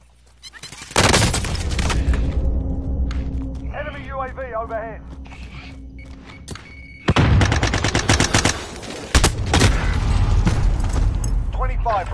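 Rifle shots crack loudly in quick bursts.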